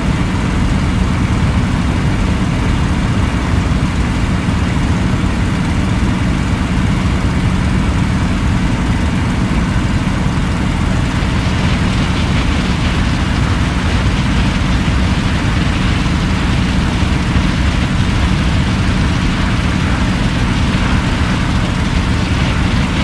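A propeller aircraft engine drones steadily close by.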